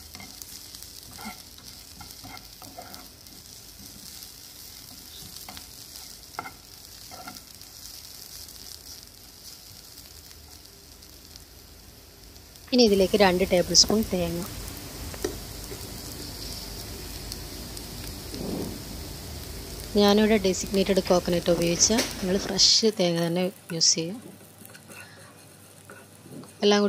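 A spatula scrapes and clacks against a frying pan.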